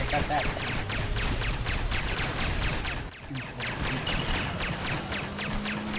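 Rapid blaster shots fire again and again.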